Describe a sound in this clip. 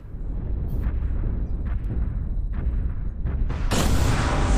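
Heavy machine footsteps thud at an even pace over a low rumble.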